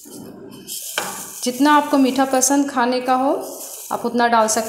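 Sugar pours and rustles into a pot of liquid.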